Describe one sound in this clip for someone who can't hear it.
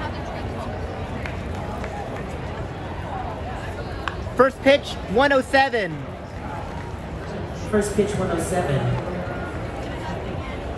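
A large stadium crowd murmurs in the open air.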